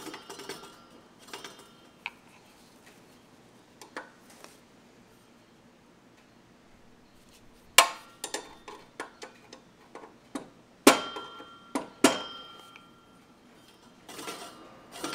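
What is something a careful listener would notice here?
Metal parts of a push mower clatter and clank as a hand handles them.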